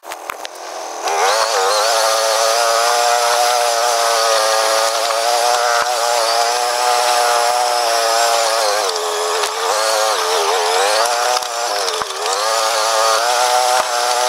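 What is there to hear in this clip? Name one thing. A quad bike engine revs up and down as the bike drives along.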